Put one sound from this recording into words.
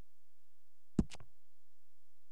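A short menu click sounds twice in quick succession.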